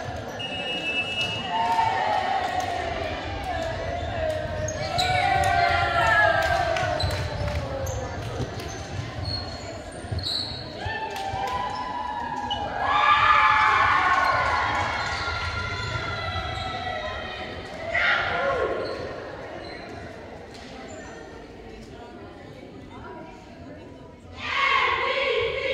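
A group of young women cheers and shouts in a large echoing hall.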